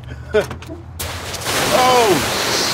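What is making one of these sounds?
Liquid gushes out of a car onto the pavement with a loud rush.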